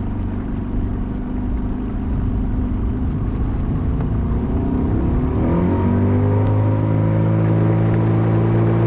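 Wind rushes past the boat.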